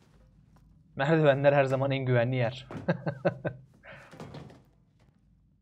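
A young man speaks in a low voice, close by.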